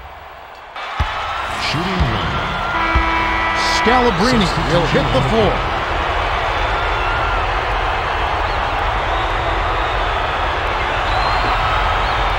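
A large crowd roars in an echoing arena.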